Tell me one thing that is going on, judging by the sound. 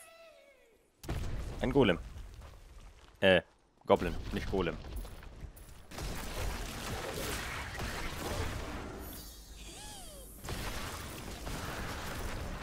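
Spells and weapons crash and clatter in a fight with monsters.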